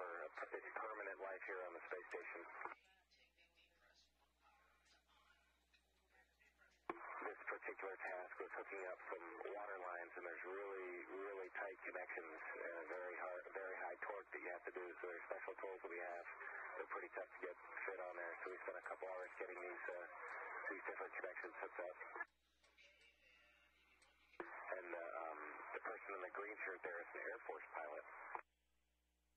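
A man speaks calmly through a microphone, in bursts with pauses.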